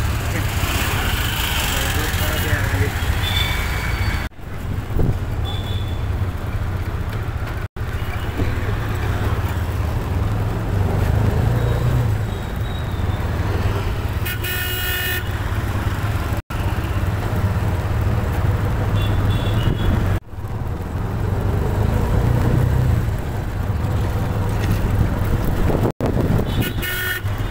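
Street traffic hums in the open air.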